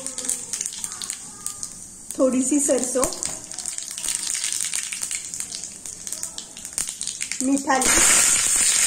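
Seeds crackle and pop in hot oil.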